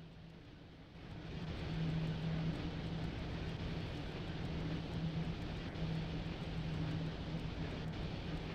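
A locomotive's motor hums steadily as the train rumbles along the rails.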